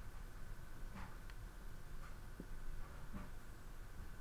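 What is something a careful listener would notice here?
A plastic pen cap clicks and taps a few times.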